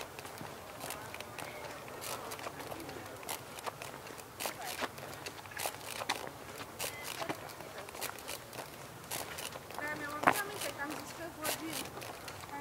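Footsteps tap steadily on a paved path outdoors.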